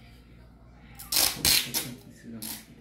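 Sticky tape rips off a roll.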